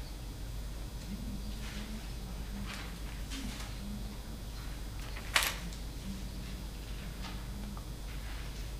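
A woman reads aloud softly, heard from a distance.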